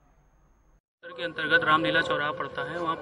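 A man speaks calmly into microphones close by.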